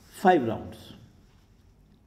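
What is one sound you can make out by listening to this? A young man close by voices a short, loud vowel that slides down in pitch.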